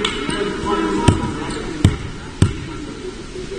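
A basketball bounces on a hard court with a sharp echoing thud.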